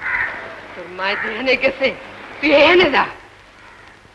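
A young boy speaks in a pleading voice, close by.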